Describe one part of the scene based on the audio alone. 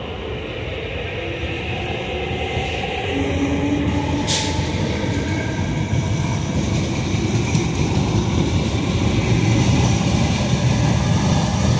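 A train rumbles along the tracks, slowly picking up speed.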